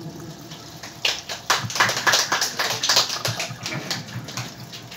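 A small crowd claps.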